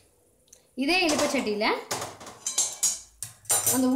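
A metal ladle clinks against a steel wok.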